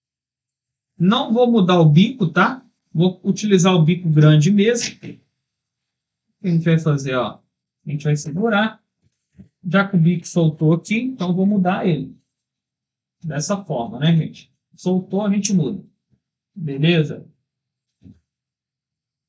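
A man speaks calmly and clearly into a nearby microphone.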